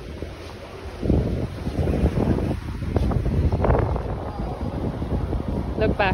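Wind buffets the microphone outdoors in gusts.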